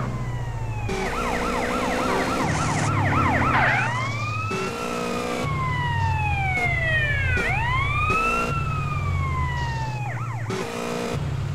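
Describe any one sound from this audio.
A police siren wails, rising and falling.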